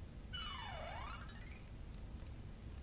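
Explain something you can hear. A magical shimmer chimes and sweeps down in pitch.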